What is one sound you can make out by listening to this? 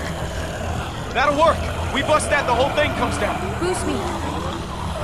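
A man calls out with urgency.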